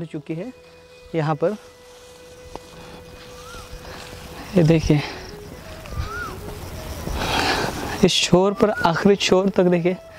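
Footsteps rustle through tall grass and leaves.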